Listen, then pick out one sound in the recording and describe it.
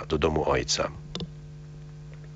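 An elderly man reads out calmly through a microphone.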